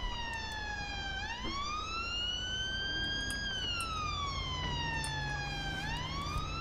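A siren wails, rising and falling steadily.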